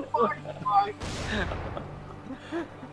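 A blast booms with a deep rumble.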